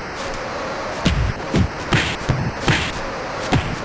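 Punches thud repeatedly against a boxer's body.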